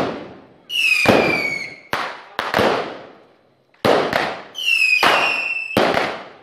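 Firework rockets whistle as they shoot upward.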